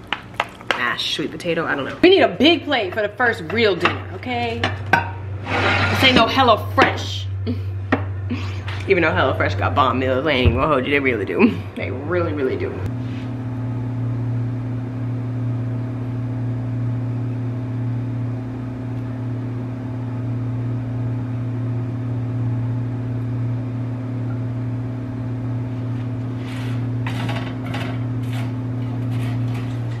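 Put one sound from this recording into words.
Meat sizzles in a frying pan.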